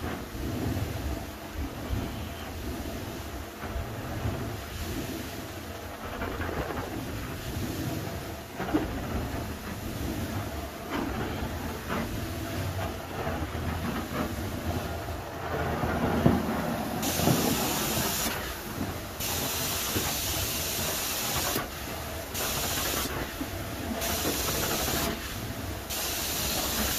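A carpet cleaning wand sucks and hisses loudly across carpet.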